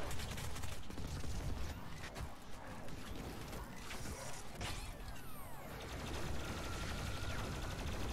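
Fireballs explode with deep booming bursts.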